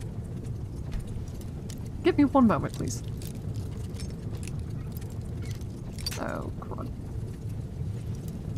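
A metal lockpick scrapes and clicks inside a lock.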